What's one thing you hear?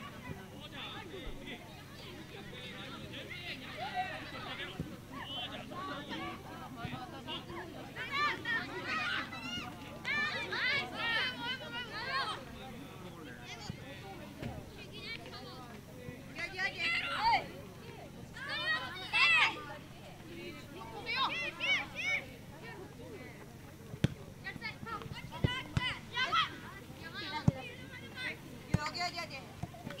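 Children shout and call out across an open outdoor field.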